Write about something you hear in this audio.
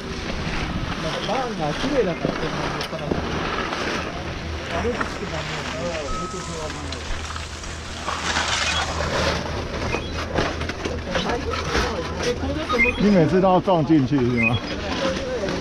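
A man talks nearby in a casual voice.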